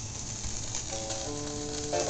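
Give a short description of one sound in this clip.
Music begins to play from the record.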